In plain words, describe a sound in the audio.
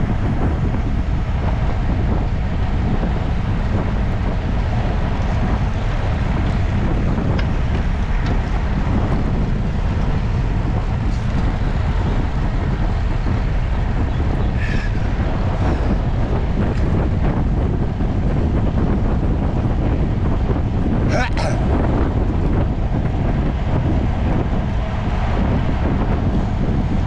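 Wind roars steadily against a microphone.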